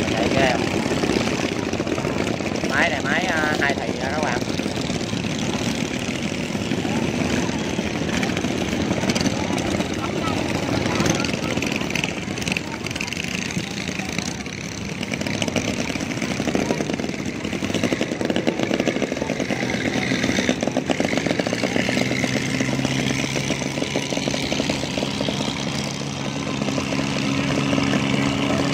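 Outboard boat engines drone and rattle nearby.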